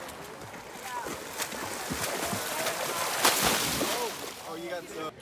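A swimmer kicks and splashes loudly in water.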